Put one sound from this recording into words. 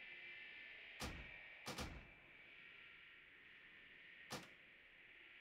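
Sharp game sound effects click.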